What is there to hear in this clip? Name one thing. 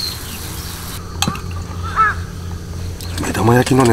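Chopsticks tap and scrape on a metal grill pan.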